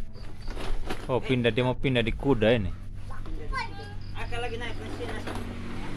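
A small child shouts and chatters excitedly nearby.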